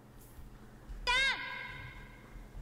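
A young man exclaims loudly close to a microphone.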